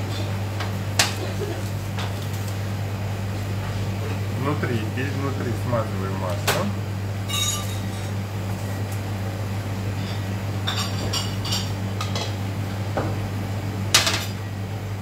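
Metal rings clink and tap.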